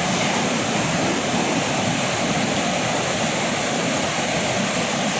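River rapids rush and roar steadily over rocks close by.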